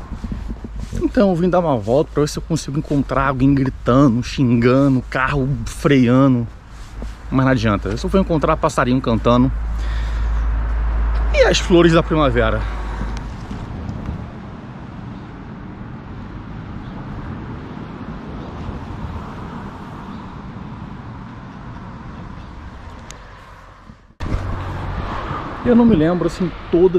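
A man talks calmly and close up.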